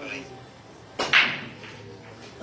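A cue stick strikes a ball and the racked balls break apart with a loud clatter.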